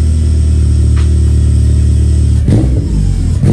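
A car engine idles with a deep, steady exhaust rumble.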